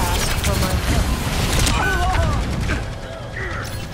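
Game weapon fire crackles and zaps in rapid bursts.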